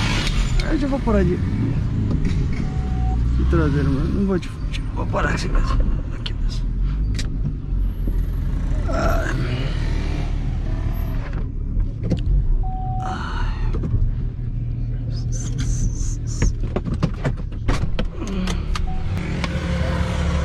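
A car engine rumbles steadily as the car drives fast.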